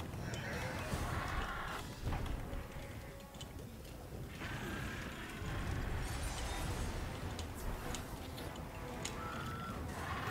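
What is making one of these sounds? A huge winged creature beats its wings with deep, heavy whooshes.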